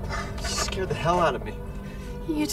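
A young woman speaks in a shaky, upset voice close by.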